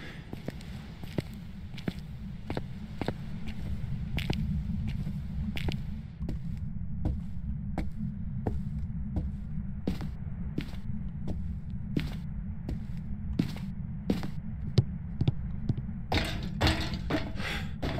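Footsteps walk at a steady pace.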